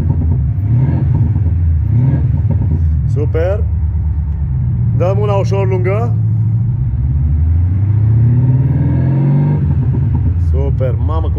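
A car engine revs up and falls back several times.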